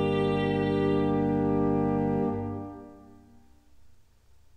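An organ holds a sustained chord that dies away in an echoing room.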